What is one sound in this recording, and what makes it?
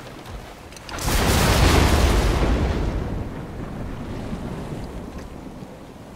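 Water rushes and churns.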